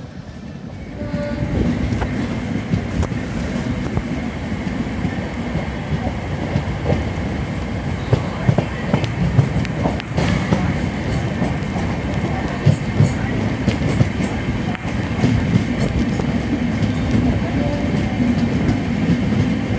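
Wind rushes past a moving train's open door.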